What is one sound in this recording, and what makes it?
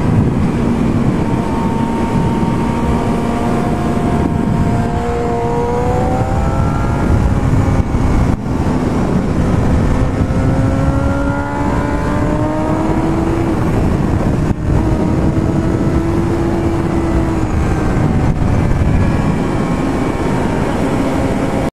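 A motorcycle engine roars loudly, its pitch rising and falling as it speeds up and slows down through the bends.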